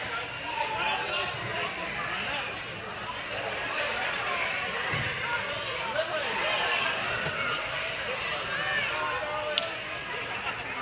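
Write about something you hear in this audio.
A large crowd of children and adults chatters loudly in an echoing hall.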